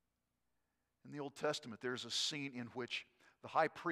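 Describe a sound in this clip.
An elderly man speaks calmly into a microphone in a large room.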